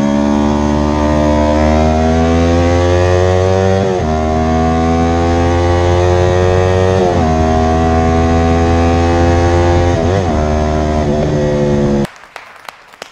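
A motorcycle engine roars at high speed, rising in pitch and dropping with each gear change.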